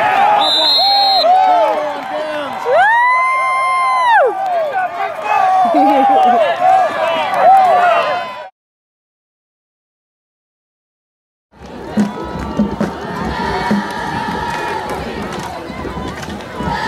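A crowd cheers and shouts in an open stadium.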